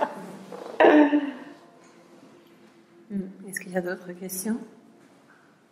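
Young women laugh softly.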